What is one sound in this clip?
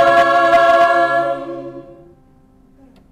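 A choir of young women sings a held chord that rings out and fades in a reverberant room.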